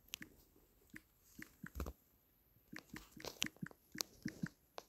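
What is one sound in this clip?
A phone keyboard clicks softly with quick taps.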